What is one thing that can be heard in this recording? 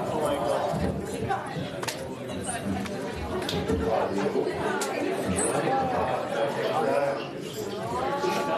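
An audience laughs and chatters in a large hall.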